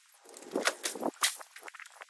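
Liquid pours from a jug and splashes onto wet ground.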